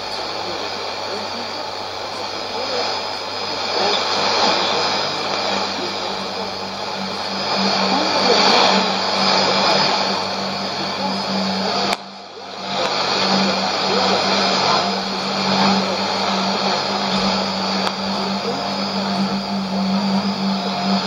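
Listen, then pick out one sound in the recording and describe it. A shortwave radio hisses with heavy static, a faint broadcast fading in and out beneath it.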